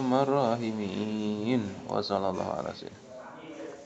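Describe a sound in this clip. A man chants melodically through a microphone.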